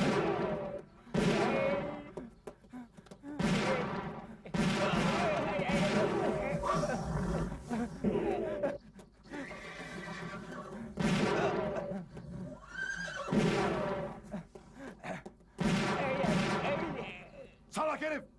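Gunshots ring out sharply several times, outdoors.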